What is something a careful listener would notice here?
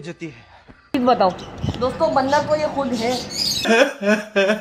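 A teenage boy talks with animation close by.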